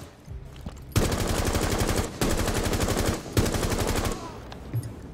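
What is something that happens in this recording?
An automatic rifle fires rapid bursts up close.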